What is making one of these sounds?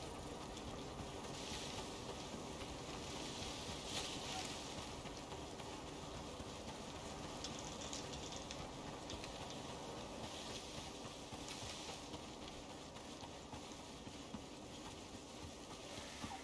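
Footsteps rustle through grass and low bushes.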